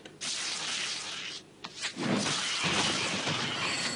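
Swords clash and clang in a fight.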